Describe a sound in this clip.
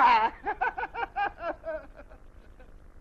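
A man laughs heartily in a cartoon voice.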